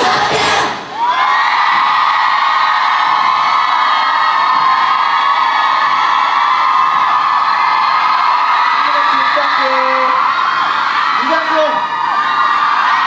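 A large crowd of young women screams and cheers loudly and steadily.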